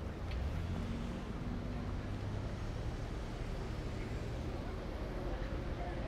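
Street traffic rumbles steadily nearby, outdoors.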